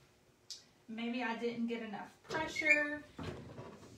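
A heat press lid swings shut with a dull thud.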